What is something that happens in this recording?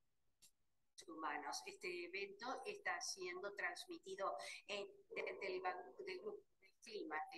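A young woman speaks clearly into a microphone.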